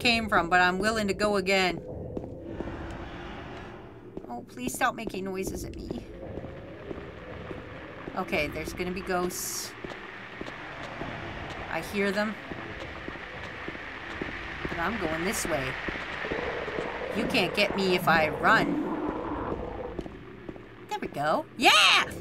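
Footsteps thud steadily on a hard street.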